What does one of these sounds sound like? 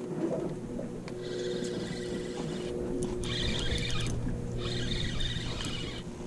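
A fishing reel clicks and whirs as it is cranked.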